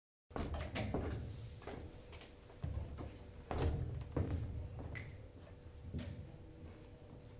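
Footsteps thump on a wooden stage floor.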